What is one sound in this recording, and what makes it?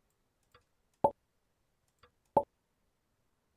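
Short soft taps sound as paper pieces snap into place.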